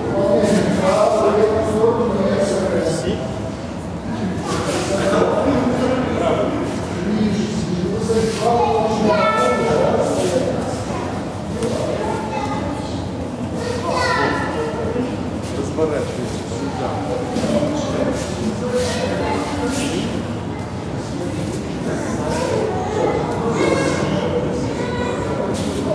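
Young children chatter and call out in a large echoing hall.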